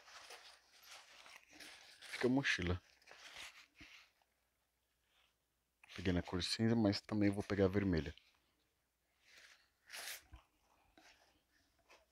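A nylon backpack rustles as it is handled.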